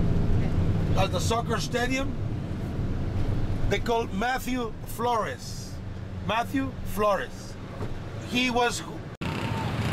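An older man talks with animation close by.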